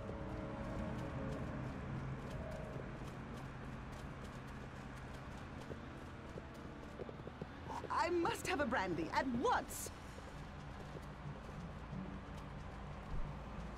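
Footsteps tap quickly on pavement.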